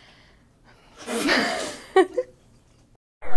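A young woman speaks cheerfully into a microphone.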